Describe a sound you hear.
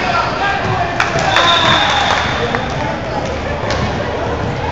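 A volleyball thumps off hands.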